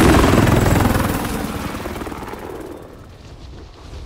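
A helicopter's rotor roars loudly, then fades.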